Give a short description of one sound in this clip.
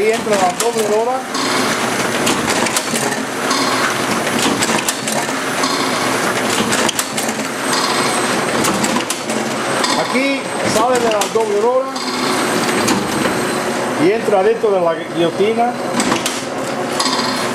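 A machine whirs and clatters steadily.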